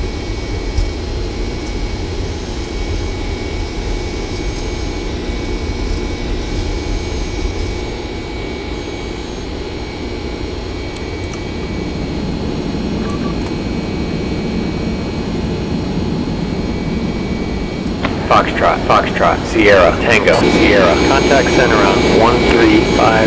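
Jet engines roar steadily.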